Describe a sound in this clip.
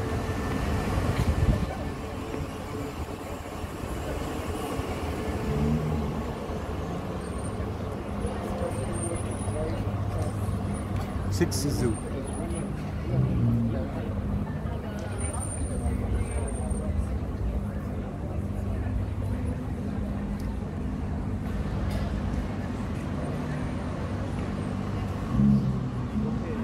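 A busy crowd murmurs and footsteps shuffle outdoors.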